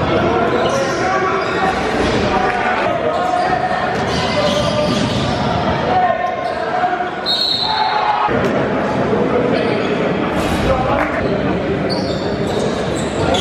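A crowd cheers and chatters loudly in an echoing hall.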